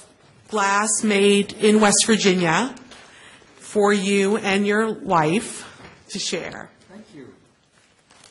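A middle-aged woman speaks with animation through a microphone in an echoing hall.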